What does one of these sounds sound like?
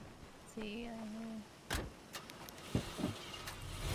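A car door clunks open and shut.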